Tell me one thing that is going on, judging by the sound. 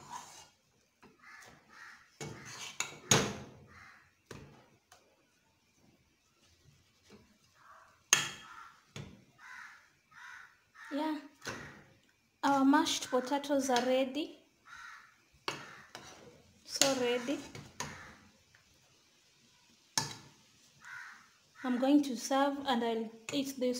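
A spatula scrapes and thumps thick dough against a pot.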